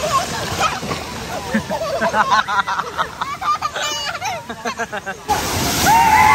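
A little girl squeals excitedly.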